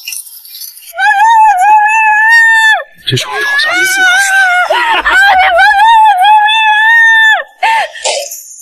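A young woman screams and cries for help.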